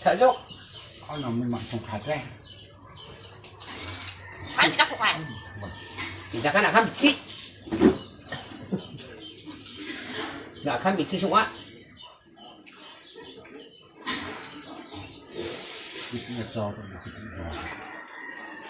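A bird calls nearby with varied whistles and squawks.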